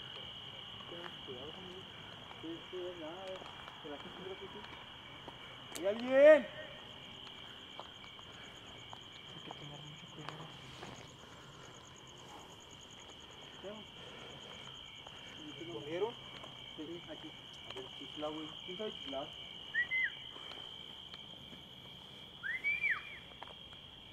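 Young men talk quietly nearby.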